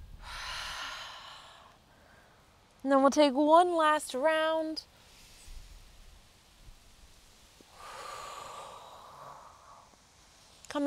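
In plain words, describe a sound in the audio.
A woman breathes out slowly and audibly.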